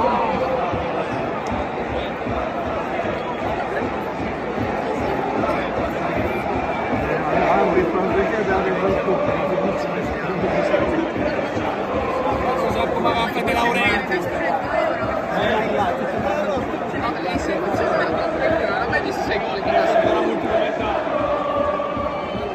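A large stadium crowd chants and sings loudly in unison, echoing around the stands.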